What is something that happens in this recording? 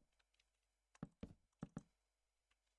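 Wooden blocks break with short, dry crunching knocks.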